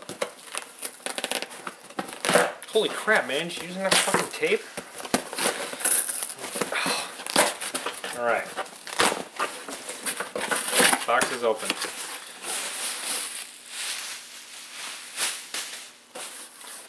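Cardboard rustles and scrapes as a box is torn open.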